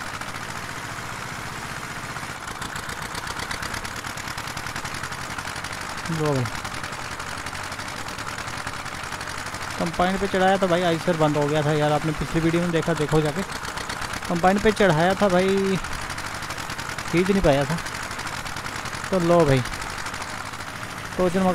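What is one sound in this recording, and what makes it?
Tractor engines rumble steadily.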